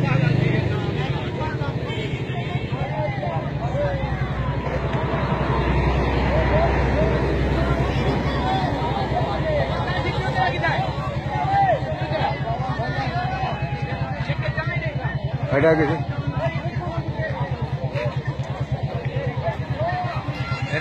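A crowd of men shout and talk excitedly nearby, outdoors.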